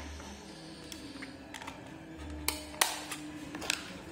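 A plastic battery cover snaps shut.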